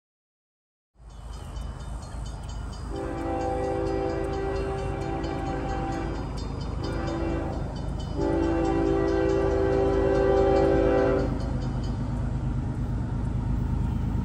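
A diesel locomotive rumbles as a train approaches.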